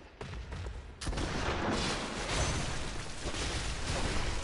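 A heavy blade strikes and clangs in a fight.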